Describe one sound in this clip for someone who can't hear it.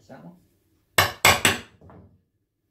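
A hammer taps sharply on a metal punch a few times.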